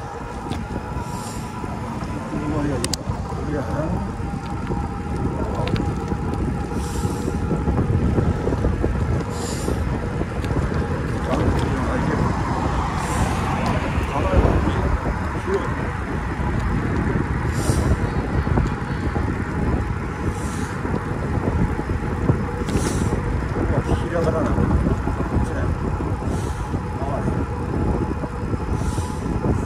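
Wind rumbles steadily against a moving microphone outdoors.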